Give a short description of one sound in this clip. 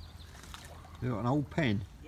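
Water sloshes as a person wades through a shallow stream.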